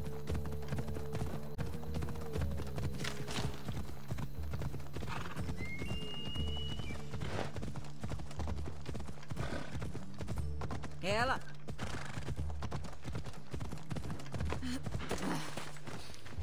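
A horse's hooves thud steadily as it trots over grass.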